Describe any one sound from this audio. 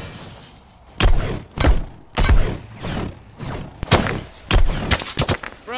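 A pickaxe swings and strikes with sharp whacks.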